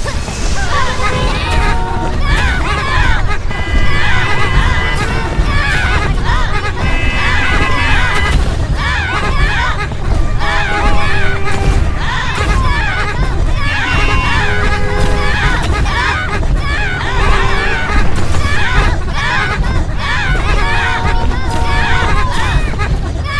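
Upbeat game music plays with bouncy tones.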